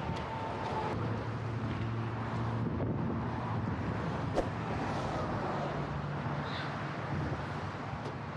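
Traffic roars past steadily nearby.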